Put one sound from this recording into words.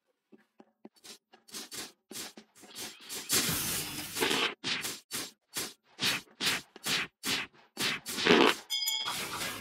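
Sword slashes whoosh and hit in quick bursts.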